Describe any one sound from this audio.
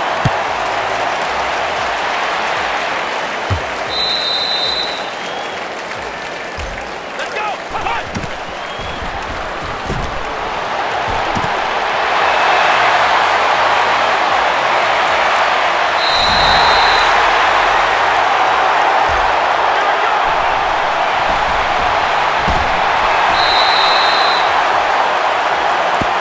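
A large stadium crowd roars and cheers steadily, swelling louder midway.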